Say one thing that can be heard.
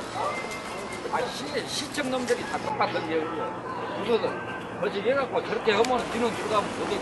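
A woman speaks close by.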